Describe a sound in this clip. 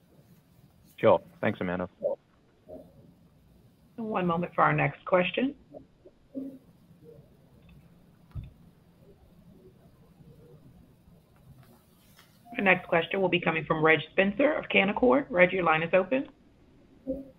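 A middle-aged woman speaks calmly over an online call, with pauses.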